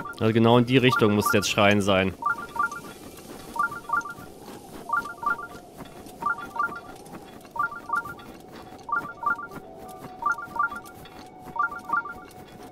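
Wind blows steadily through a sandstorm.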